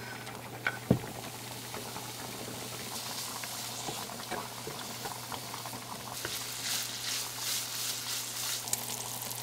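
Bacon sizzles and crackles in a hot pan.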